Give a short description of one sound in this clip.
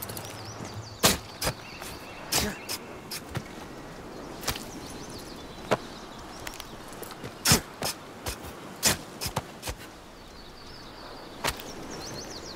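A knife chops repeatedly into a carcass.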